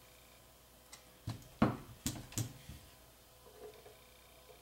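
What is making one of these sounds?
Hands knock and tap on a wooden box.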